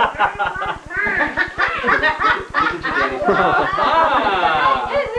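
A young boy talks excitedly.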